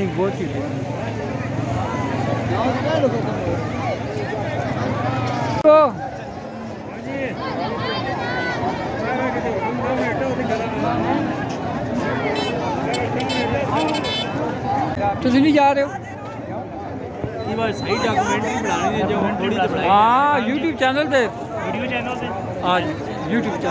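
A large outdoor crowd of men chatters and shouts all around.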